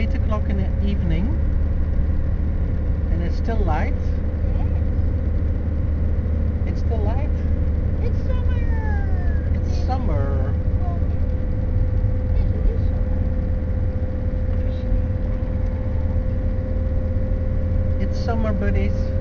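A car engine hums steadily at a constant speed.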